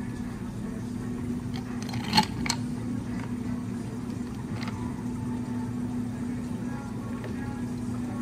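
A thick drink pours over ice in a glass.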